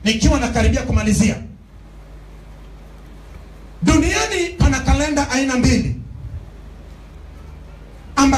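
A man preaches loudly through a microphone and loudspeakers in an echoing hall, in bursts with pauses.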